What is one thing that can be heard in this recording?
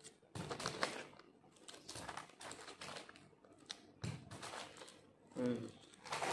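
A chip bag crinkles and rustles close by.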